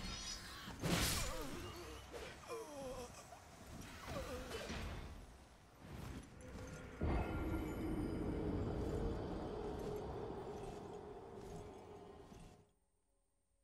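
Heavy blows strike and clash in a fight.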